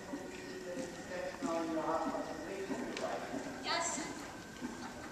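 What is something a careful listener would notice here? A woman speaks calmly, in a large echoing hall.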